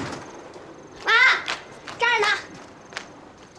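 A girl calls out from a distance.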